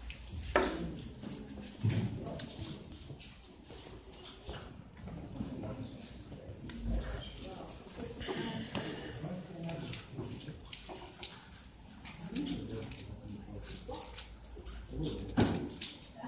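A puzzle cube clicks and rattles as it is turned quickly.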